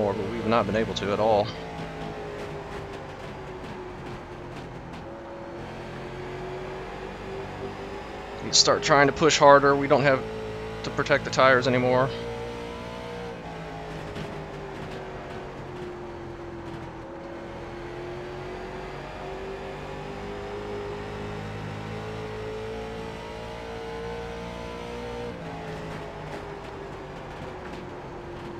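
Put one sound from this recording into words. A race car engine drones steadily, its pitch rising and falling.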